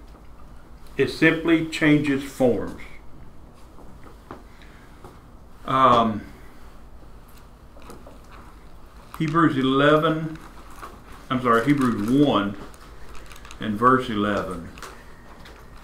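An older man speaks calmly in a room with a slight echo, pausing between phrases.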